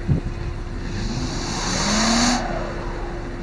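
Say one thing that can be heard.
Car tyres spin and whir in deep snow.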